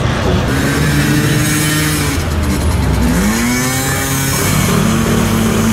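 A motorcycle engine hums as the motorcycle rides by.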